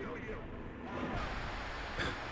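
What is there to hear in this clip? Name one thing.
Static hisses loudly and steadily.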